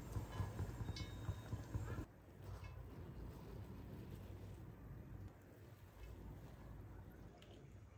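A metal ladle scrapes and scoops rice in a metal pot.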